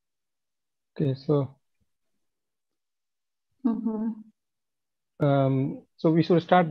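A young man speaks in short bursts over an online call.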